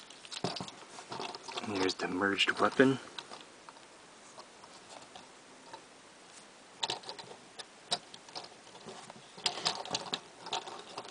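Plastic toy parts click and snap as they are handled.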